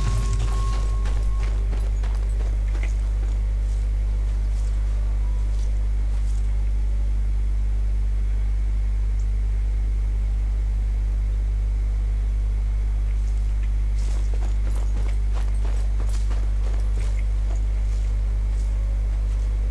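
Footsteps crunch on dry grass and dirt.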